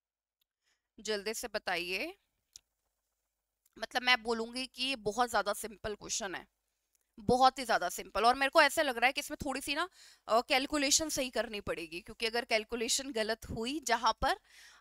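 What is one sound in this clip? A young woman speaks with animation into a headset microphone, close up.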